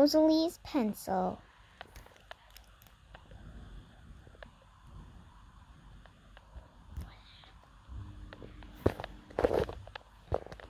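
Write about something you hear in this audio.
Small plastic toy pieces click softly as they are handled.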